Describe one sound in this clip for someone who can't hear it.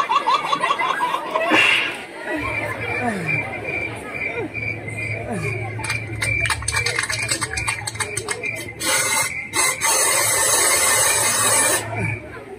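Young men chatter and call out nearby outdoors.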